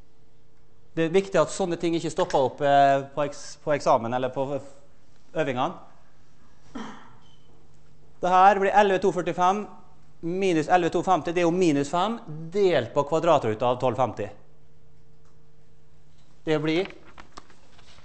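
A man lectures through a microphone in a large echoing hall, speaking calmly with pauses.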